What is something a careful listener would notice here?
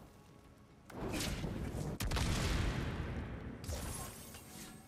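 Fire bursts with a loud whoosh and roar.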